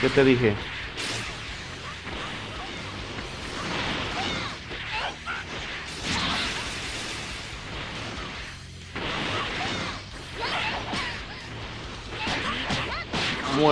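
Energy blasts whoosh and crackle in bursts.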